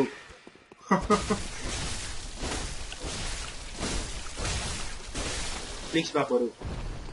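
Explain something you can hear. A blade slashes and strikes flesh in quick, wet hits.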